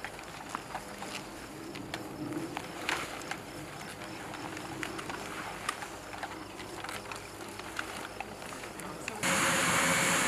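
Boots tramp and rustle through tall grass.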